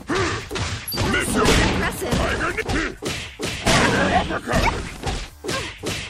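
Punches and kicks land with heavy, sharp thuds.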